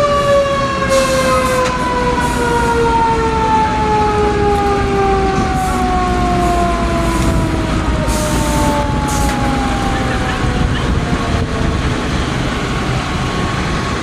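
A siren wails nearby, its pitch slowly falling.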